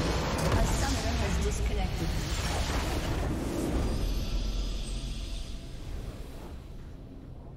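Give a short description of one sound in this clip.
A large explosion rumbles and crackles, then slowly fades.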